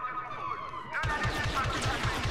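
Blaster rifles fire in a firefight.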